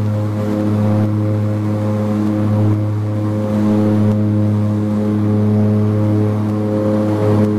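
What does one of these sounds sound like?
Aircraft wheels rumble along a runway.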